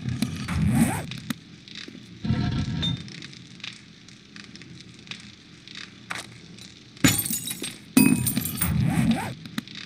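Fires crackle in forges.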